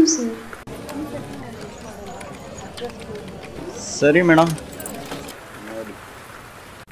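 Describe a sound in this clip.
A young man speaks quietly on a phone.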